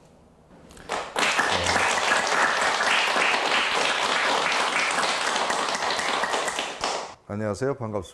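A small audience claps and applauds in a room.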